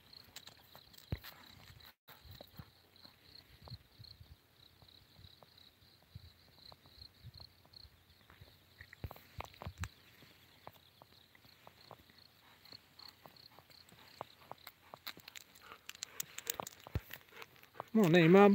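Dogs' paws patter and scuff on a gravel road.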